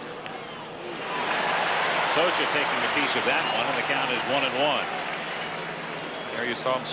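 A large crowd roars and cheers loudly in a stadium.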